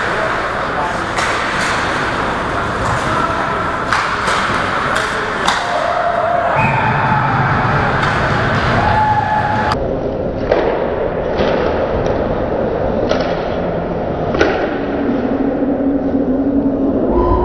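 Skates scrape and carve across the ice in an echoing rink.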